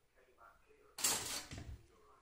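A toaster pops up with a sharp click.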